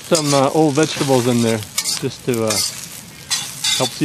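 A metal utensil scrapes and clatters against a pan.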